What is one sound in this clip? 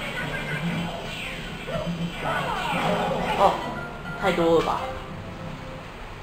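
Video game sound effects play from a television.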